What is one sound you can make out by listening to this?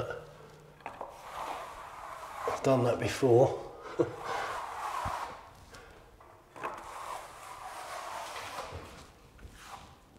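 A trowel scrapes wet plaster.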